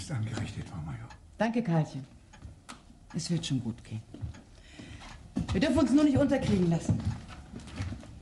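A woman speaks warmly and with feeling close by.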